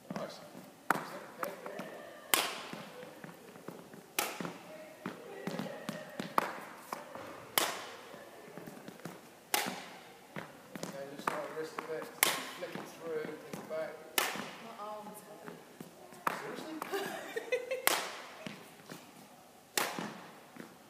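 A racket smacks a shuttlecock again and again in a large echoing hall.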